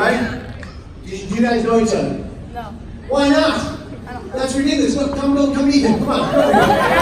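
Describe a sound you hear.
A man speaks loudly with animation into a microphone over loudspeakers, in a large echoing hall.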